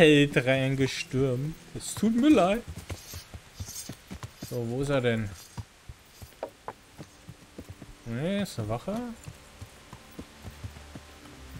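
A horse's hooves thud steadily on a dirt track.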